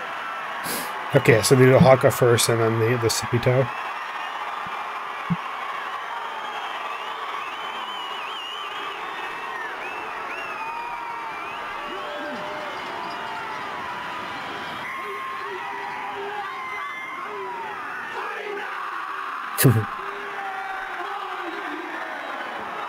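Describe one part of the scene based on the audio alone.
A large crowd murmurs and cheers in the distance.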